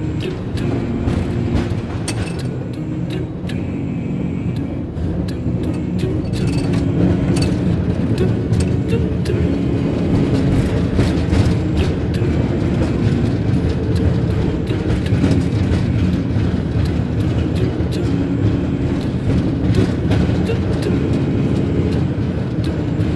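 A gondola cabin rumbles and hums as it runs along its cable.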